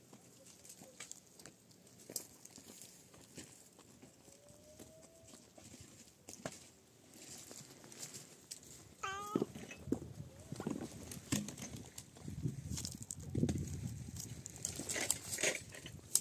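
A small child's footsteps crunch on gravel.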